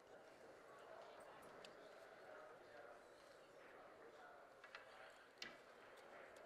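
Pool balls click softly together as they are racked.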